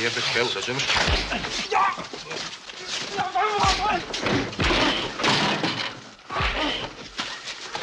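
Men scuffle and grunt as bodies thud together.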